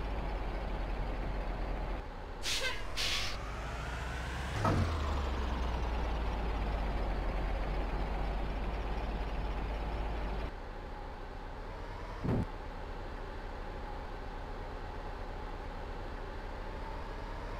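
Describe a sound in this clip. A bus engine hums and revs steadily.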